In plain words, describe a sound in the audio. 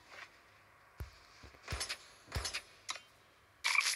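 Sharp game impact sounds thud.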